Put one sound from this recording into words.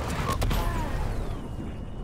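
A burst of electric sparks crackles and explodes.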